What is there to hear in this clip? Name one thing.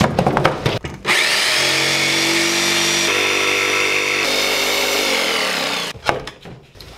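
A jigsaw motor whines steadily while cutting wood, then winds down.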